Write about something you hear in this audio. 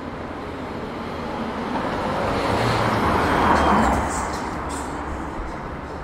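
A car drives past on a city street, swelling and fading.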